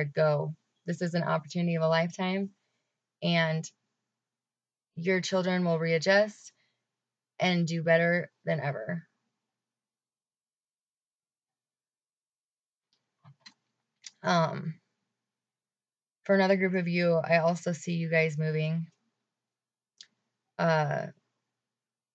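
A young woman talks calmly and close to a microphone, in short bursts with pauses.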